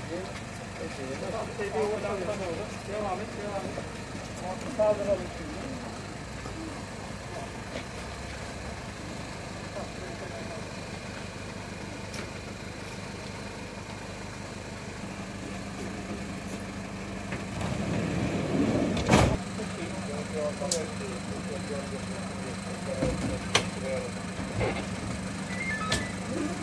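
Several men talk to each other outdoors.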